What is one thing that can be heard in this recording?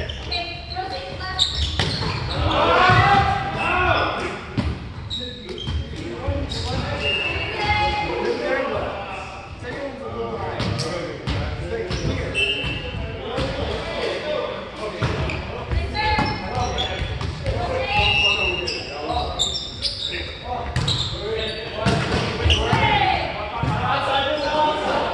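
Men call out and talk with animation in a large echoing hall.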